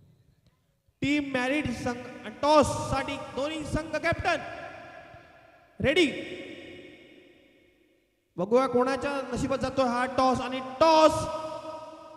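A man speaks loudly, with a strong echo.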